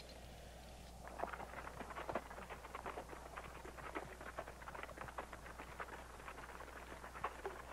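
Footsteps crunch faintly on loose rocks.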